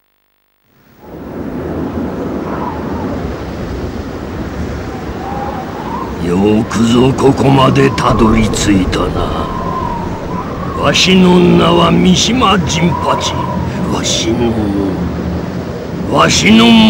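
Rough sea waves roar steadily.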